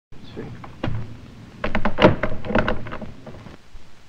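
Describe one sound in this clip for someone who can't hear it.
A man knocks on a door.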